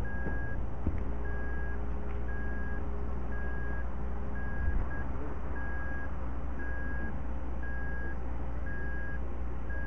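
A fire engine idles with a low, steady rumble.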